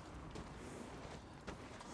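Horses' hooves thud softly in snow.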